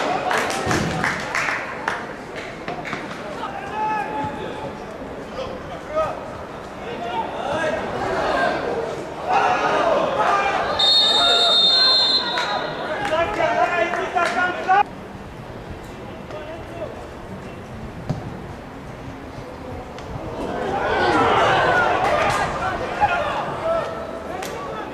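Young men shout and call out across a large open stadium.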